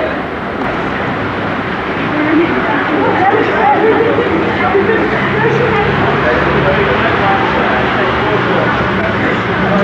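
A crowd of young people chatters outdoors.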